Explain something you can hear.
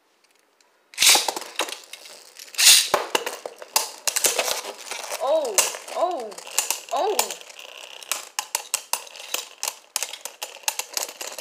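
Spinning tops clatter and knock against each other.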